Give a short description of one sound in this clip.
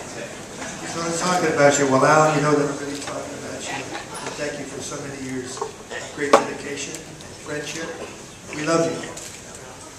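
A man speaks through a microphone and loudspeakers.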